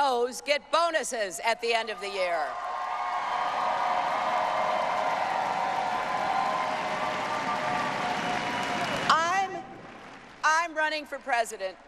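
A woman speaks forcefully into a microphone in a large hall.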